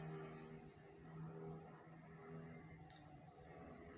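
Liquid pours into a glass bowl.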